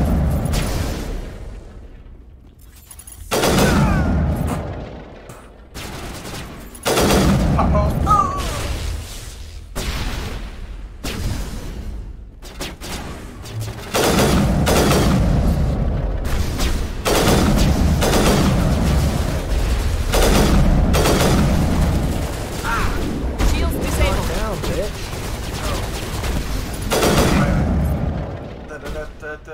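Gunfire cracks and booms in sharp bursts.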